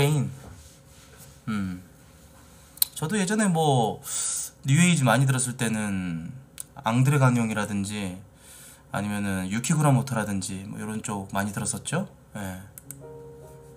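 A man talks animatedly into a close microphone.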